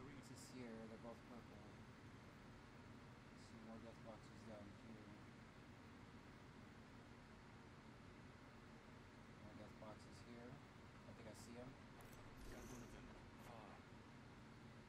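A young man talks calmly into a nearby microphone.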